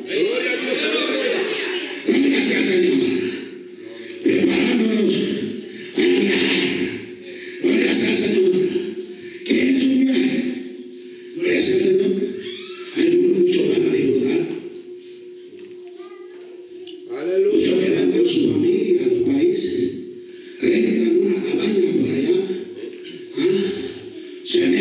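A man preaches with animation through a microphone and loudspeakers, in bursts with pauses, in an echoing hall.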